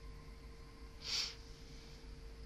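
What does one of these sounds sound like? A young woman blows a short breathy hiss close into a microphone.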